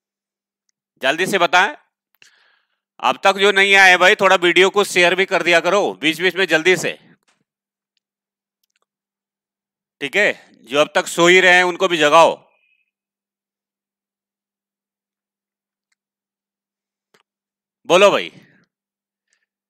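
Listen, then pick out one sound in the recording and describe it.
A man speaks with animation close to a headset microphone, in short bursts with pauses.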